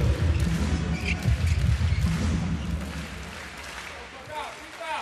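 A large crowd cheers and roars in a big echoing arena, then quiets down.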